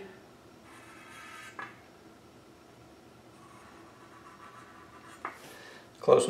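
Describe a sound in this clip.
A felt marker scratches on metal.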